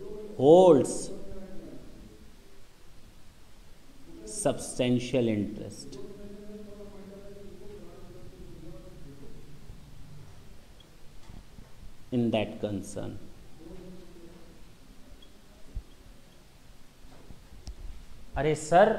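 A man speaks calmly and clearly into a microphone, explaining in bursts with pauses.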